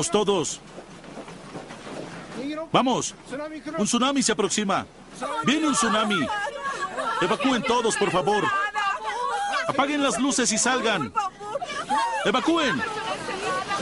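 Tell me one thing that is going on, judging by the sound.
A man shouts in alarm close by.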